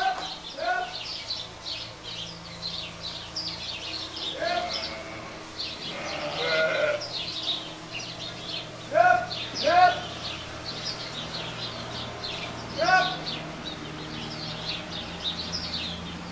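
Sheep hooves shuffle through straw.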